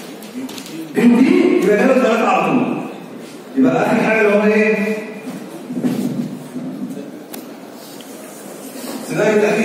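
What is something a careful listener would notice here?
A man speaks steadily through a microphone and loudspeaker, explaining in a calm lecturing tone.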